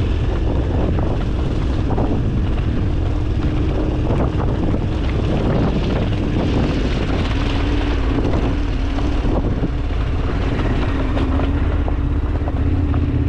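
Bike tyres crunch and rattle over loose gravel at speed.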